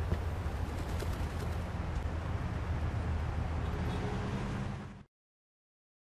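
Footsteps climb stone steps.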